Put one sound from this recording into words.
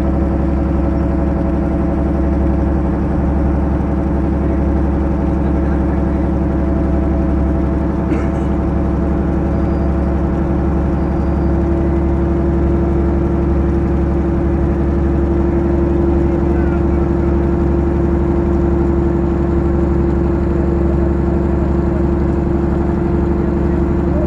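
A boat engine drones steadily close by.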